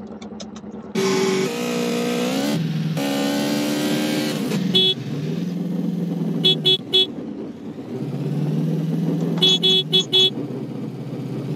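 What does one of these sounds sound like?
A motorcycle engine revs loudly and roars as it speeds up.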